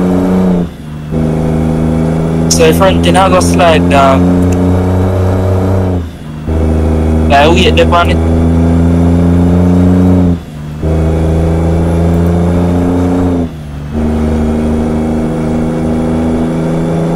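A heavy truck engine drones steadily, briefly dropping off as the gears shift.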